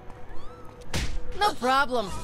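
A gunshot cracks sharply.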